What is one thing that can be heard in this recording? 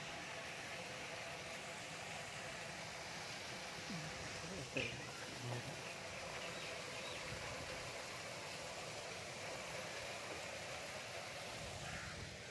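Water splashes steadily from a fountain's spouts.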